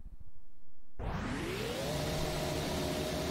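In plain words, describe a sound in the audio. A racing car engine idles.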